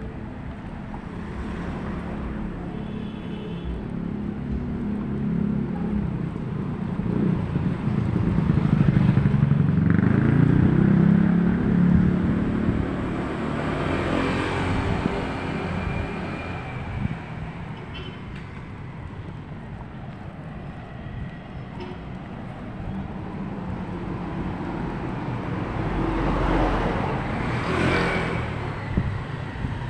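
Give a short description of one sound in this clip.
Low traffic hum carries along the street.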